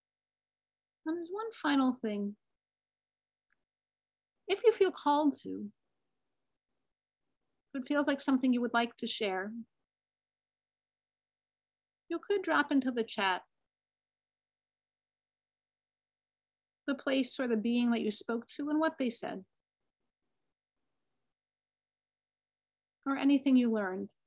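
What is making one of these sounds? A woman speaks slowly in short phrases over an online call, with long pauses between them.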